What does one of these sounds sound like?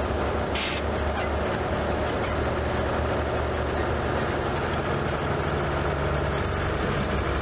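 A combine harvester engine roars steadily nearby.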